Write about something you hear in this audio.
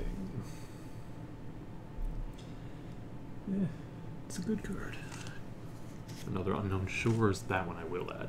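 Playing cards rustle and slap softly as a hand picks them up and sets them down.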